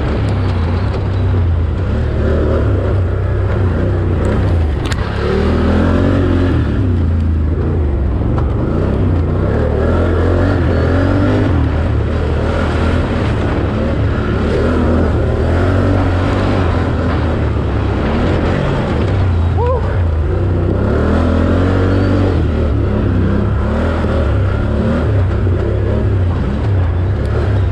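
Tyres churn over mud and dirt.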